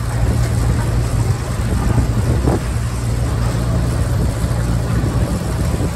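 A machine engine runs with a steady low rumble.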